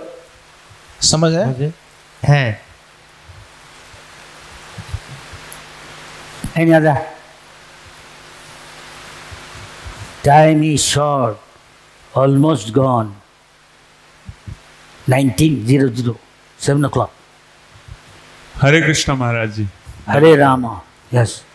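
An elderly man speaks slowly into a microphone, heard through loudspeakers, with pauses between phrases.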